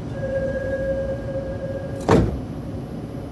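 Train doors slide shut with a thud.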